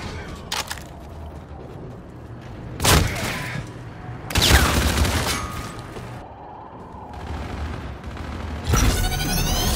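A gun fires in loud bursts.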